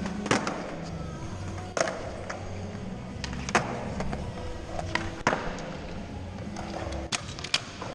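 A skateboard deck clacks sharply against the ground.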